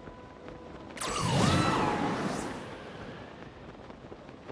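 A strong gust of wind roars upward and then fades.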